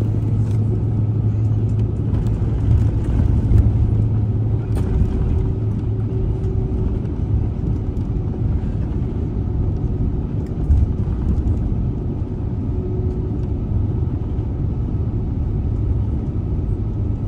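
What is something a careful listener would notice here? Jet engines drone steadily from inside an aircraft cabin.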